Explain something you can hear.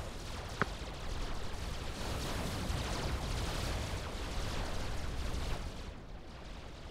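Rapid gunfire and blasts rattle in a battle.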